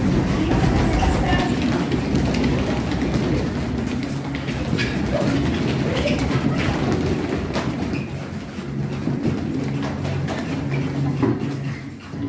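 Children's feet stamp and shuffle on a tiled floor.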